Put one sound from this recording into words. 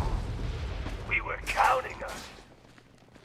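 A young man speaks briefly and with animation, close to a microphone.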